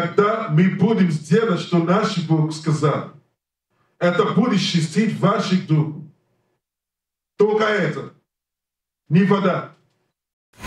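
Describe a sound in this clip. A man preaches with emphasis into a microphone, in bursts with pauses.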